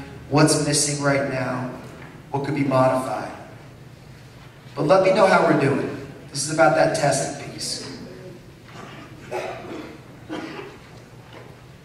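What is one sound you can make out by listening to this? A man speaks into a microphone through loudspeakers in a large room.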